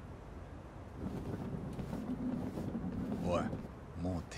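A cart rolls along on small wheels.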